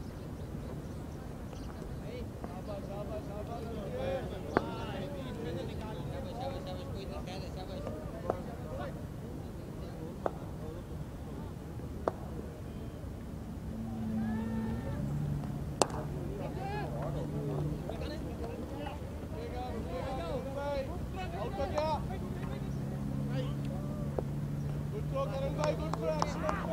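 Men call out and chatter across an open field.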